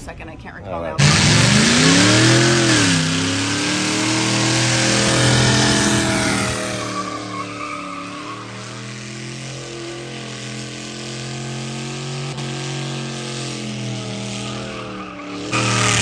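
A truck engine roars and revs loudly.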